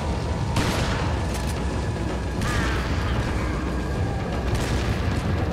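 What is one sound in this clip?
A shotgun fires with loud blasts.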